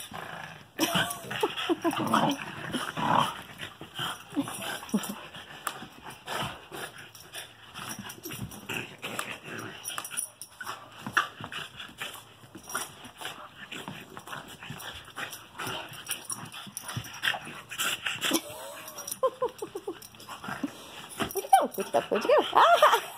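A dog yelps and whines in high bursts.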